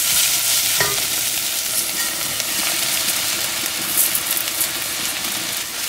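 Rice pours into a pot with a rushing patter.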